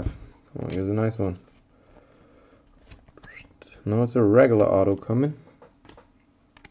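Trading cards rustle and slide against each other in a person's hands.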